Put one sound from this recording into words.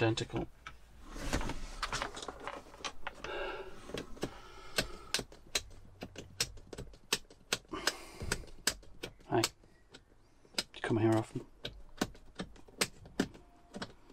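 Plastic parts click and snap as a man works on a dashboard.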